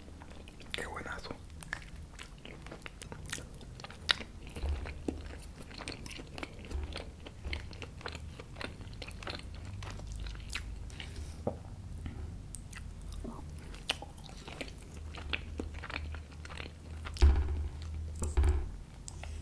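A young man chews and smacks his lips close to a microphone.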